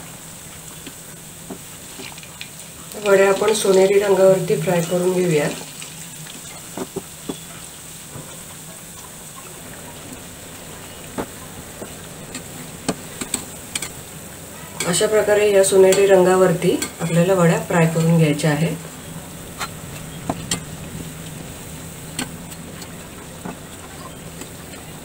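Hot oil sizzles and bubbles steadily.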